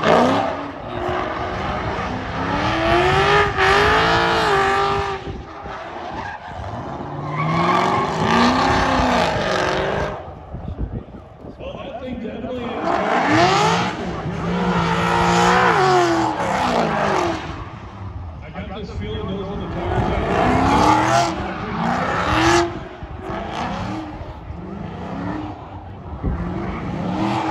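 Tyres squeal and screech on tarmac.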